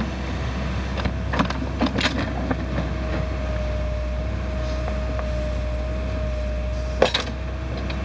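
Hydraulics of a backhoe whine as the arm moves.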